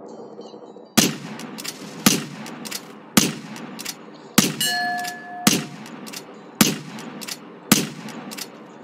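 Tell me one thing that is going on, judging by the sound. Sniper rifle shots crack out one after another, each followed by a short echo.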